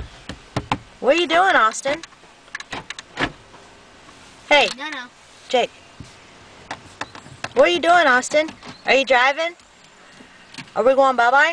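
A young child babbles and squeals in a high voice close by.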